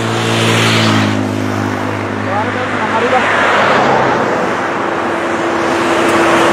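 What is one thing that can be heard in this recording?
A bus engine roars as the bus approaches and passes close by.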